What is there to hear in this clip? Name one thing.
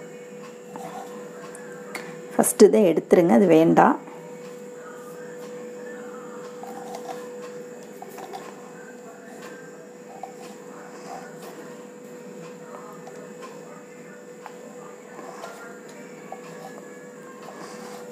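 A knife taps softly on a board as it cuts soft dough.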